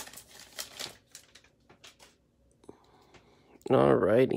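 Trading cards slide against each other.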